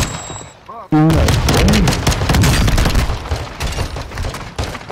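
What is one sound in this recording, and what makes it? Pistol shots crack in quick succession.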